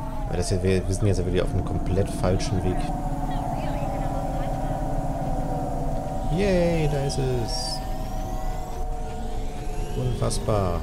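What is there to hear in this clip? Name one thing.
A hover car engine hums steadily.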